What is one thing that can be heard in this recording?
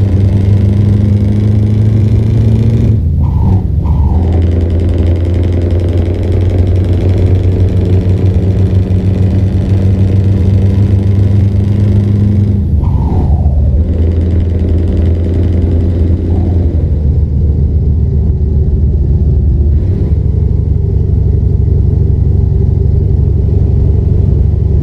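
A truck engine drones steadily at a low pitch while driving.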